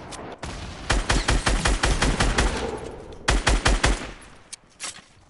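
A gun fires in quick bursts of shots.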